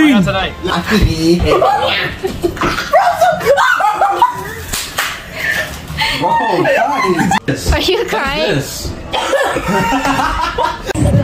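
A young woman laughs loudly and shrieks close by.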